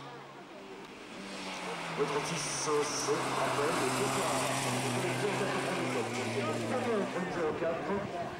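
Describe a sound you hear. A rally car engine roars and revs hard close by.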